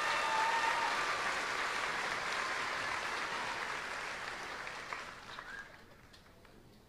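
A large crowd cheers and applauds outdoors.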